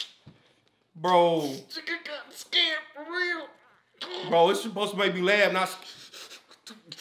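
Men laugh heartily close by.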